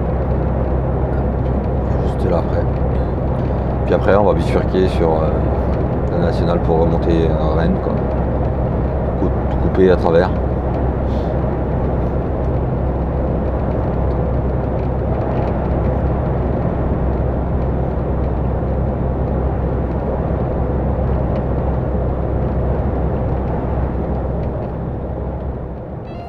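Tyres roar steadily on the road surface.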